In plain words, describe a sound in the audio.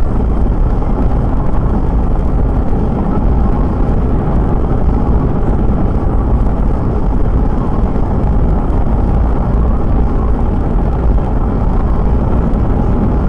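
Tyres roar steadily on the road from inside a moving car.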